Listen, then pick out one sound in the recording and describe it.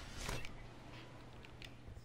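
Wind rushes past a gliding game character.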